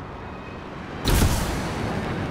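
Jet thrusters fire with a sudden, loud roar.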